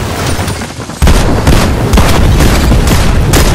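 Gunshots fire rapidly and loudly at close range.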